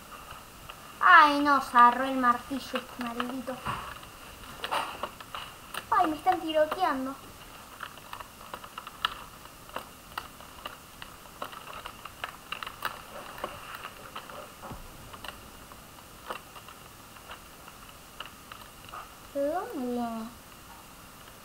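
A boy talks into a headset microphone in short bursts.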